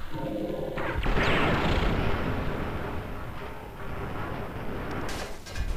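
A robot bursts apart in a booming explosion.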